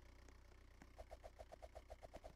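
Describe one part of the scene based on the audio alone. A bouncy game sound effect boings rapidly over and over.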